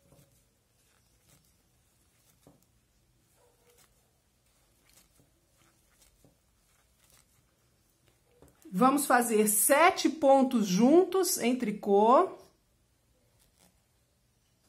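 Plastic knitting needles click softly against each other.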